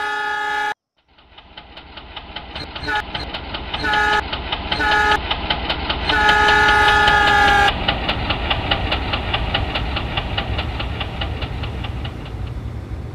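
A train rumbles and clatters steadily over the rails.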